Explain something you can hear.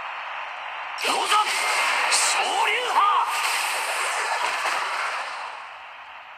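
A powerful blast explodes with a roaring burst.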